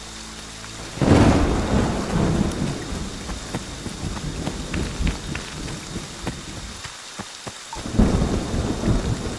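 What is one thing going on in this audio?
Footsteps crunch over the ground.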